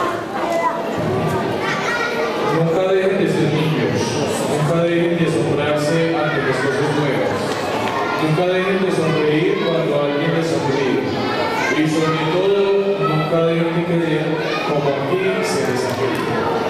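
A man speaks calmly into a microphone over loudspeakers in an echoing hall.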